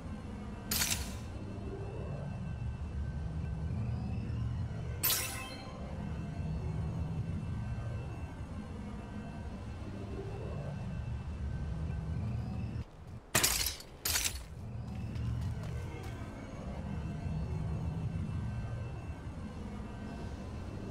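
Footsteps thud quickly as a game character runs.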